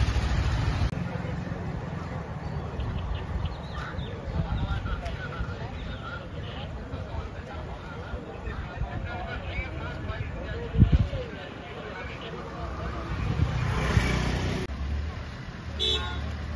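A crowd chatters outdoors at a distance.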